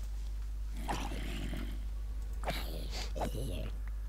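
Blows thud against a monster.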